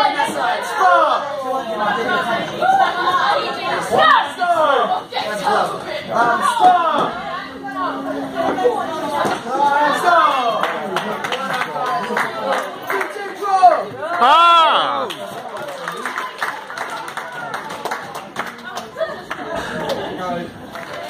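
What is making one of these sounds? A crowd of men and women cheers and shouts loudly nearby.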